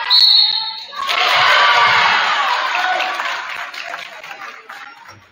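A crowd cheers and shouts.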